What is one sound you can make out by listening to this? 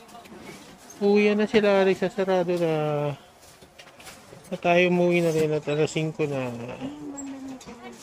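A woman calls out loudly nearby in a drawn-out voice.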